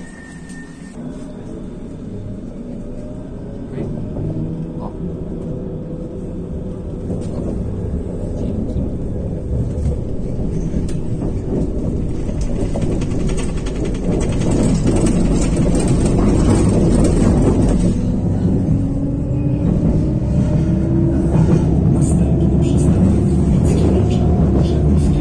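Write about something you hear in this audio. A tram hums and rumbles as it rolls along the tracks, its motor whining up and down in pitch.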